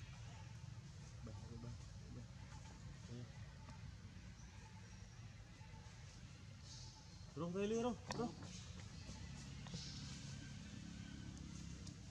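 Leaves and branches rustle as a monkey climbs through a tree.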